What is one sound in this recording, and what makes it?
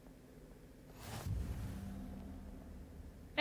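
A magical burst whooshes up.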